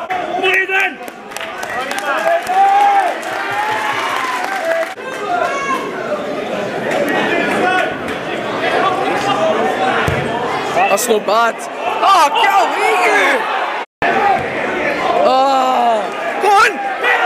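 A crowd of men shouts and chants loudly nearby, outdoors.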